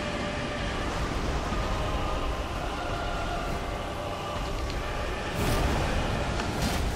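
A low, dark rumble of game music drones steadily.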